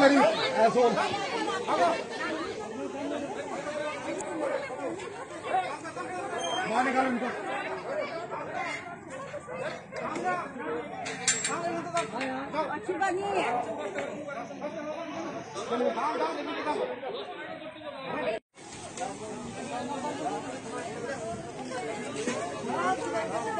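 A crowd of men shout and talk over one another nearby.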